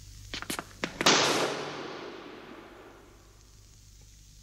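A pistol shot rings out, echoing in a large room.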